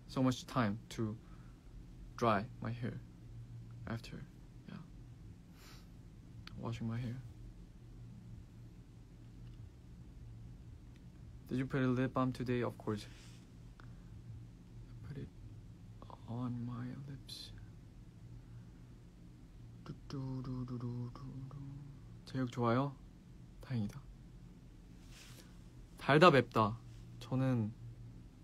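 A young man talks calmly and close to a microphone, in short bursts with pauses.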